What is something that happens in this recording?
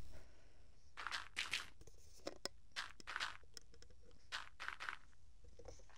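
Soft footsteps crunch on grass.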